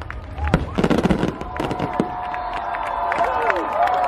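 Fireworks burst with loud booms and crackles.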